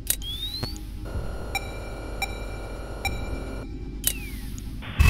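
An electronic device beeps in a steady repeating rhythm.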